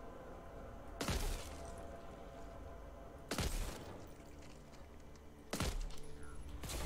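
Gunshots bang loudly a few times.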